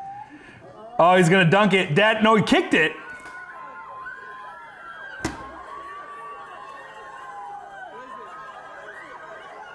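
A crowd of adults cheers and screams loudly outdoors.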